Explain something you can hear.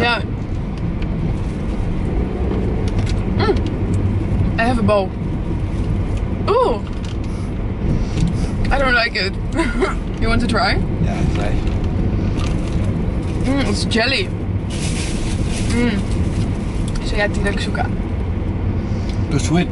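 A car engine rumbles steadily inside the car.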